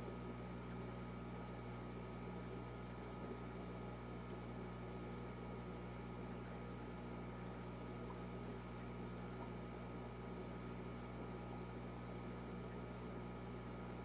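An aquarium filter hums steadily with a soft bubbling of water.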